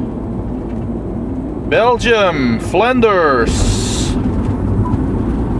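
A car drives along a highway with a steady low road rumble.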